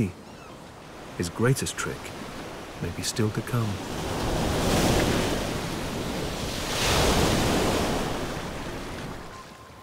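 Waves wash up onto a beach and draw back.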